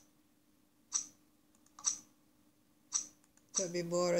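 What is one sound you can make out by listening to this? A computer card game makes short snapping card sounds.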